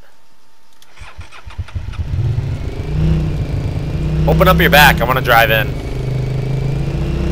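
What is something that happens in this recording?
A quad bike engine starts up and revs as the bike drives off over rough ground.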